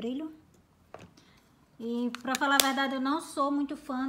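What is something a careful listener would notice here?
A plastic compact clicks shut.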